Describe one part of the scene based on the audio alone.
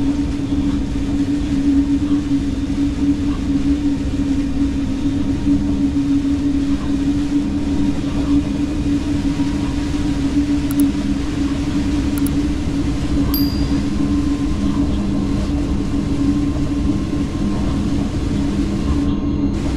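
A train's electric motors hum steadily as it rolls along the track.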